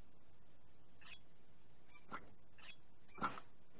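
Short menu clicks and chimes sound.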